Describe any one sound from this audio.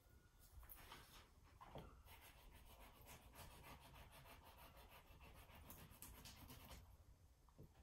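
A brush dabs and scrapes softly on canvas.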